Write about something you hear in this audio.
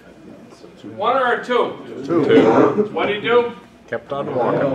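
An older man speaks nearby in a room.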